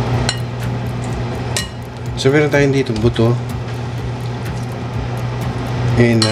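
Pieces of meat plop into a pot of water.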